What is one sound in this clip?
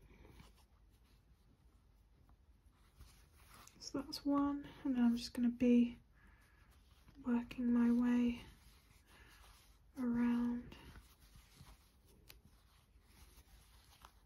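A crochet hook softly scrapes and pulls through yarn.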